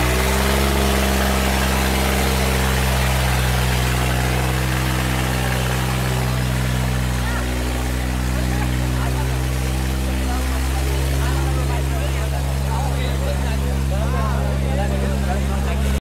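A tractor engine runs loudly with a deep, steady throb.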